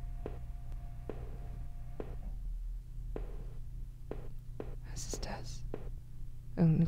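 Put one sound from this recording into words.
Footsteps tap at an even pace.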